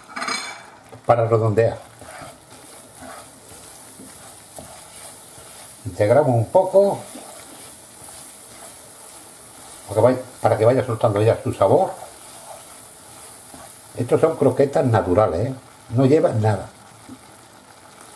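A wooden spoon stirs a thick mixture in a pan.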